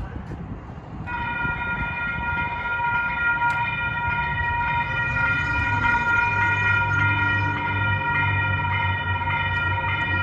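A railway crossing bell rings loudly and steadily.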